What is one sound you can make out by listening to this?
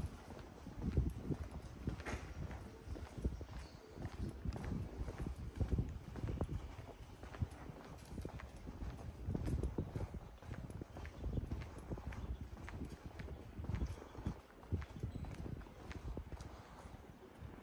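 Footsteps tap steadily on pavement outdoors.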